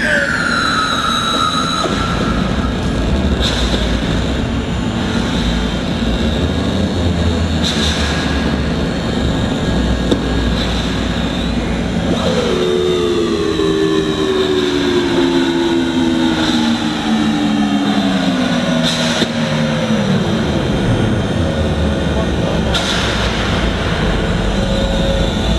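Electronic music plays loud through a concert PA in a large hall.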